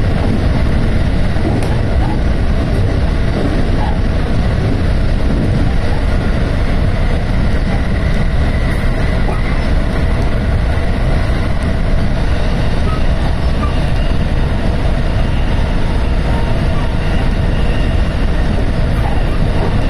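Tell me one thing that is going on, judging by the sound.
Wheels clatter on the rails.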